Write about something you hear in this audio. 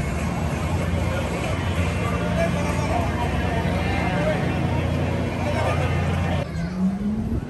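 A crowd chatters outdoors nearby.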